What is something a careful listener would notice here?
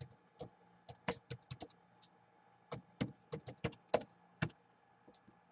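Fingers tap on laptop keys in quick bursts.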